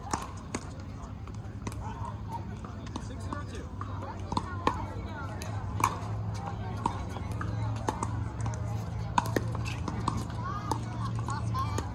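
Paddles strike a plastic ball with sharp hollow pops, back and forth.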